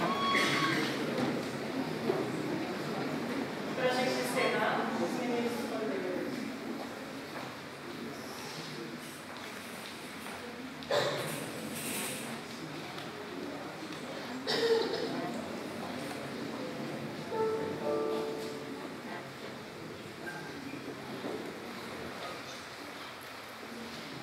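A mixed choir sings in an echoing hall.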